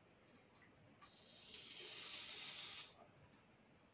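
A man draws a long, hissing breath.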